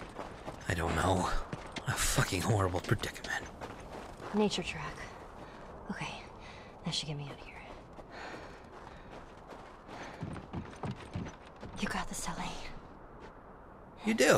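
Footsteps crunch on snow and then thud on wooden planks.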